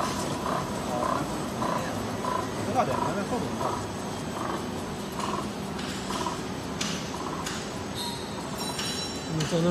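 A labelling machine runs with a steady mechanical whir and rhythmic ticking.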